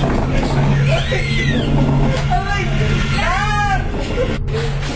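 A young child squeals in high, rising and falling cries nearby.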